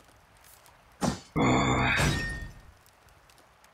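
A short burst of game sound effects plays.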